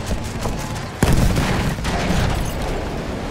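A large shell explodes with a loud blast.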